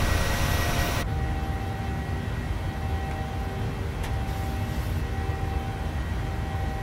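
Jet engines drone low and steady, heard from inside a cockpit.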